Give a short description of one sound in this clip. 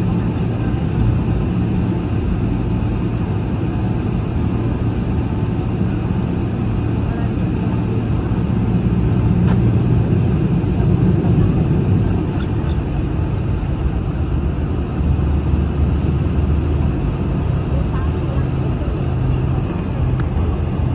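Jet engines roar steadily from inside an airplane cabin.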